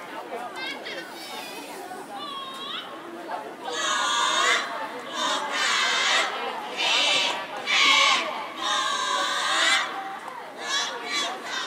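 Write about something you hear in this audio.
A large choir of young voices sings together outdoors through loudspeakers.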